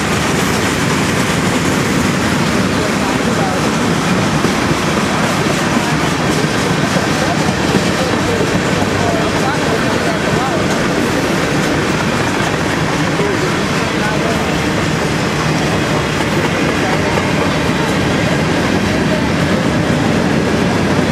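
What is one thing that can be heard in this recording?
Metal wheels squeal faintly against the rails.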